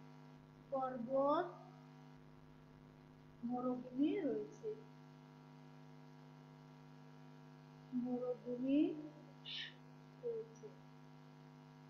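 A woman speaks slowly in short phrases, close by.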